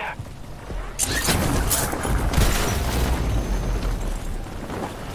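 Wind rushes loudly past during a parachute descent.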